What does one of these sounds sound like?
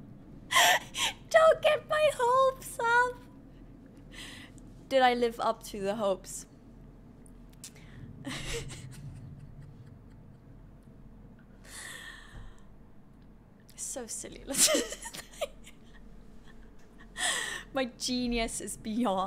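A young woman talks and laughs with animation into a close microphone.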